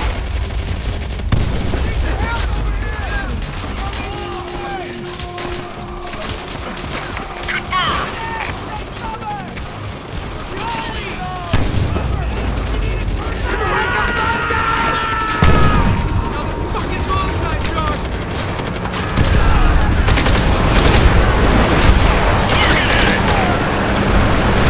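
Gunfire crackles and pops throughout.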